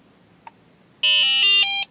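A breath tester beeps in a quick rising and falling tune.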